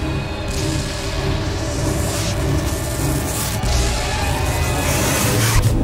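An airship's engines drone deeply overhead.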